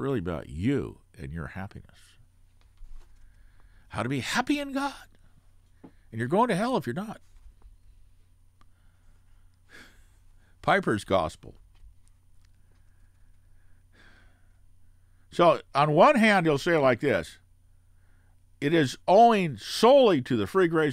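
An elderly man speaks calmly into a close microphone, in short bursts with pauses.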